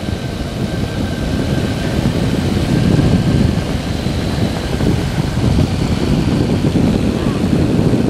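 An aircraft engine drones steadily close by.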